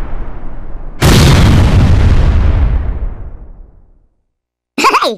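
A second loud explosion booms and slowly fades away.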